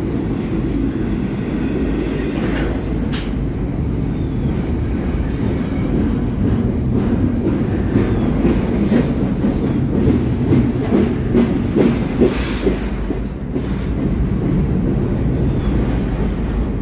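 A long freight train rumbles past up close.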